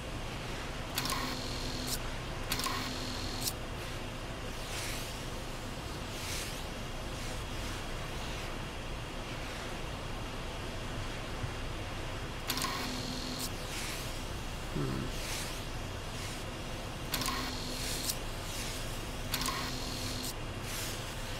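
Game pieces slide into place with short chiming tones.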